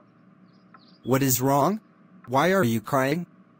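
A man speaks close by in a questioning, animated voice.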